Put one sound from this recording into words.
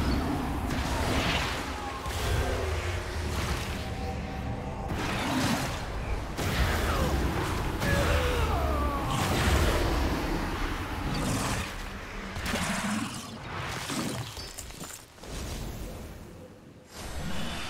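Video game spell effects whoosh and crackle during combat.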